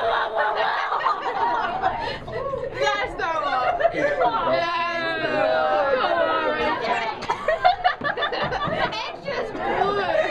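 A man laughs up close.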